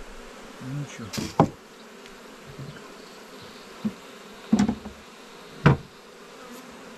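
Wooden hive parts knock and clatter.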